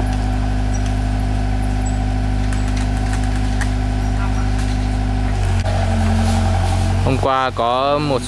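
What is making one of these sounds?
An excavator engine drones steadily nearby.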